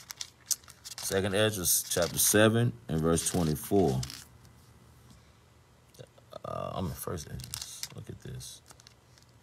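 A man speaks calmly and close to a phone microphone.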